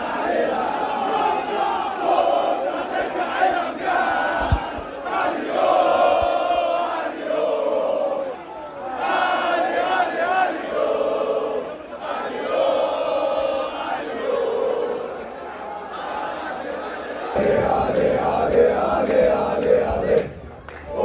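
A large crowd of men chants and sings loudly in rhythm.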